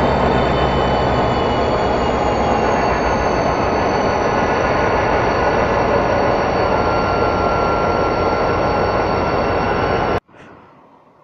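A diesel locomotive engine rumbles loudly close by.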